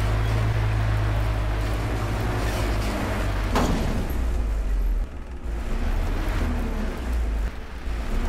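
Wind and road noise rush past the cab.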